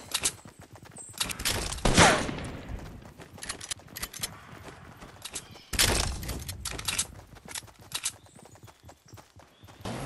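Footsteps patter quickly on hard ground.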